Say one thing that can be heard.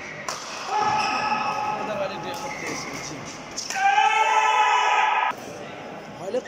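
A shuttlecock is struck sharply with a racket, back and forth.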